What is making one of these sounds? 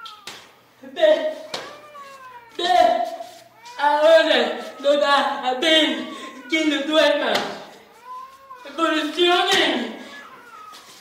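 A young woman speaks loudly and with animation nearby.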